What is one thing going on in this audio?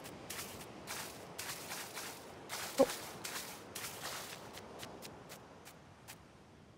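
Footsteps patter quickly over soft grass.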